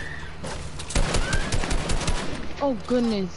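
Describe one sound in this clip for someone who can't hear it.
Game gunfire cracks in a quick burst.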